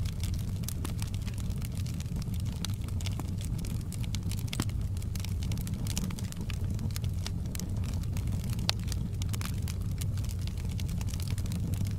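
Flames roar softly with a low steady rumble.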